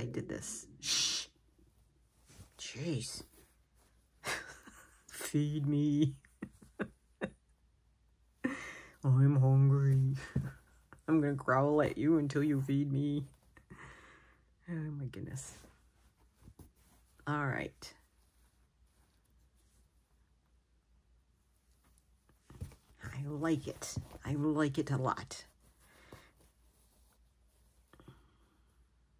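Thread is drawn through fabric with a soft rustle.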